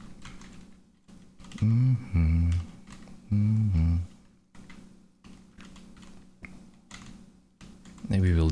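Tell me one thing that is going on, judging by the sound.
Keyboard keys click.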